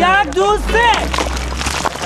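Loose rocks tumble and clatter down a slope.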